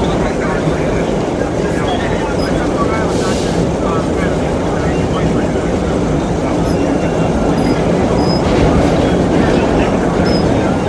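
A subway train rumbles and rattles loudly along the tracks.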